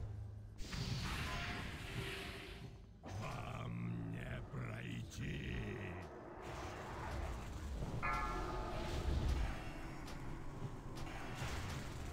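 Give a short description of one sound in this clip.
Spell effects crackle and whoosh in a game battle.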